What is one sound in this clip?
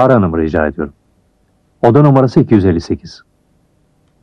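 A man speaks calmly into a telephone, close by.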